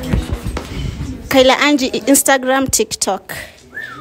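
A young woman speaks loudly into a microphone.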